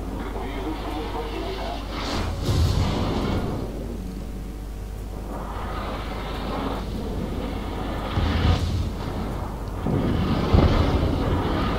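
Shells splash into water nearby.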